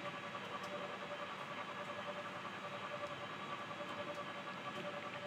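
A small underwater drone hums with a steady, softly pulsing whine.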